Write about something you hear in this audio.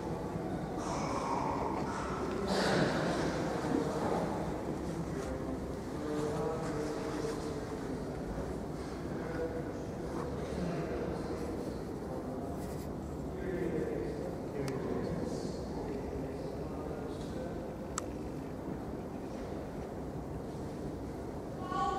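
A man murmurs quietly in a large echoing hall.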